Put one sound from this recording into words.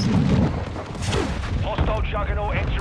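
A loud explosion booms in the distance.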